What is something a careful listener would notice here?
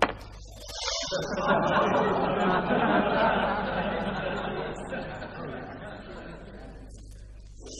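A crowd murmurs and exclaims in a large hall.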